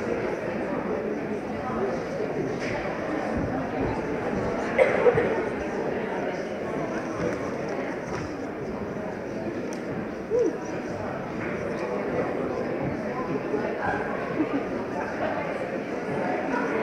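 An audience murmurs and chatters softly in a large hall.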